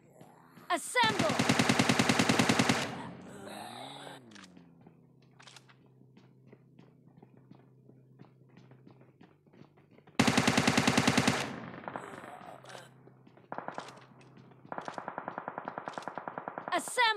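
A rifle fires rapid automatic bursts, loud and close.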